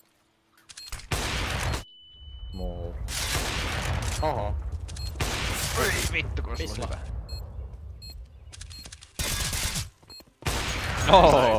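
A sniper rifle fires with a loud boom.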